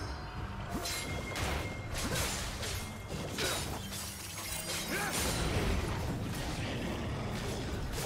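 Video game spell effects whoosh and crackle in quick bursts.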